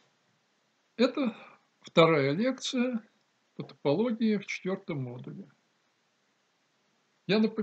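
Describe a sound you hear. An elderly man speaks calmly and close to the microphone, in short phrases with pauses.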